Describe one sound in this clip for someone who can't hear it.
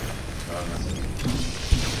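A blast bursts with a loud boom.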